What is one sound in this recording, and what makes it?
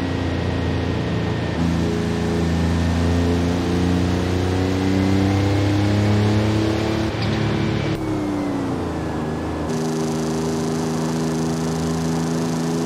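A car engine drones steadily, its pitch stepping up and down as gears shift.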